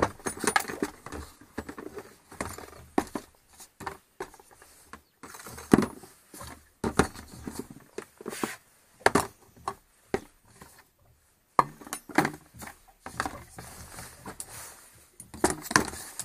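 Plastic bottles and tins clunk as they are set into a plastic box.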